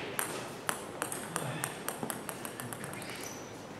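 A table tennis ball bounces on a hard floor with quicker and quicker clicks.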